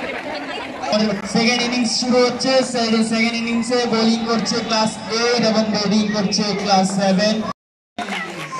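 A teenage boy speaks loudly into a microphone.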